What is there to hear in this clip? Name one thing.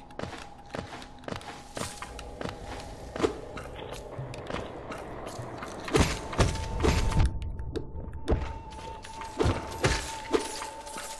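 A blade swishes in quick, sharp slashes.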